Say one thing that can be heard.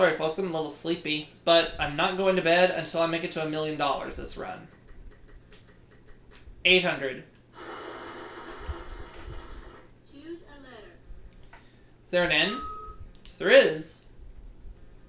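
Electronic game music and jingles play from a television.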